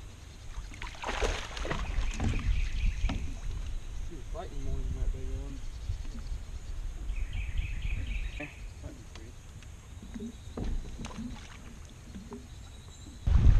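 A man talks with animation outdoors.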